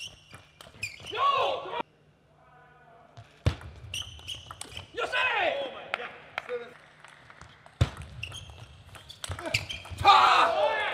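A young man shouts loudly, his voice echoing in a large hall.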